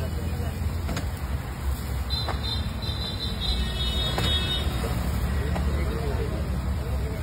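Flatbreads are patted softly onto a hot griddle.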